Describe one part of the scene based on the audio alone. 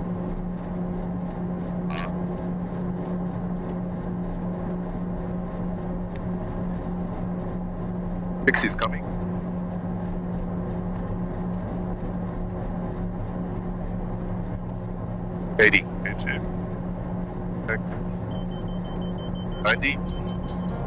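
Aircraft engines drone steadily from inside a cockpit.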